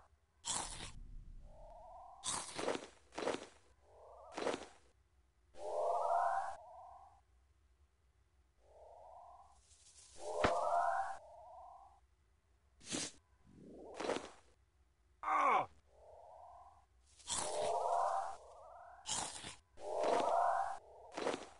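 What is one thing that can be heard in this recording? Short game sound effects play again and again.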